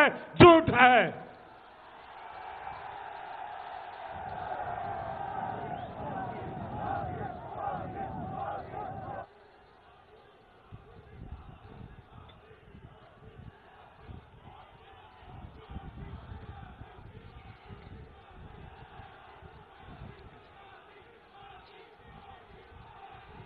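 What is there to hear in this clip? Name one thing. A man speaks forcefully into a microphone over loudspeakers.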